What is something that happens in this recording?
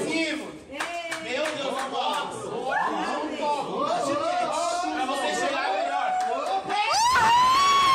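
A group of young men and women talk and laugh excitedly close by.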